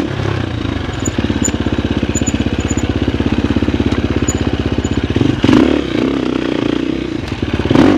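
A dirt bike engine putters and revs up close.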